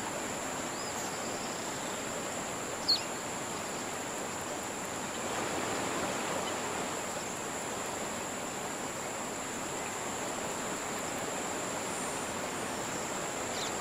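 A fishing reel clicks steadily as line is wound in.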